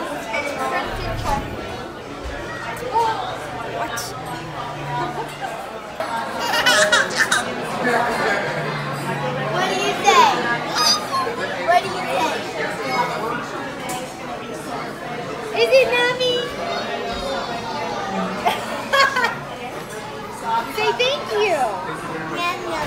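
A busy room murmurs with background chatter.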